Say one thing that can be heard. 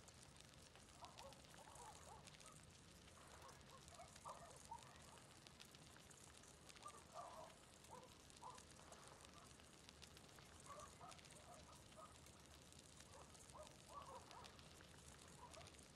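Water laps gently against a dock.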